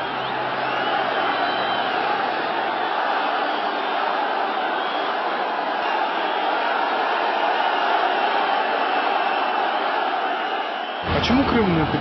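A large crowd roars and chants outdoors.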